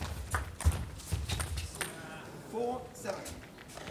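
A table tennis ball clicks sharply back and forth off paddles and the table.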